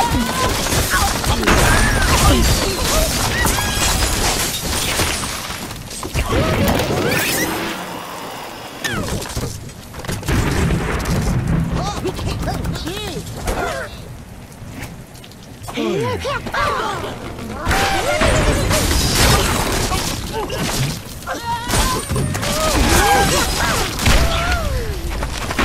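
Wooden and stone blocks crash and clatter as towers collapse.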